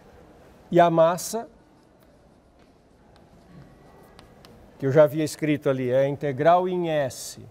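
A middle-aged man speaks calmly, lecturing in a room.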